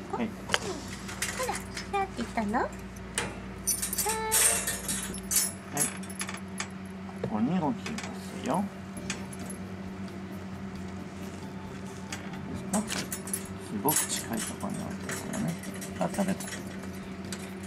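A metal chain jingles against wire bars.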